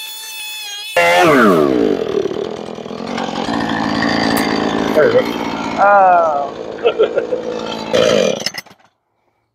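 A chainsaw engine idles and sputters.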